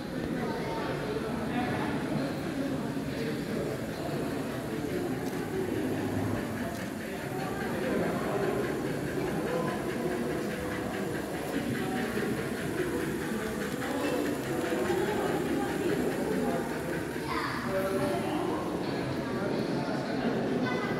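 Toy trains rattle and hum along their tracks.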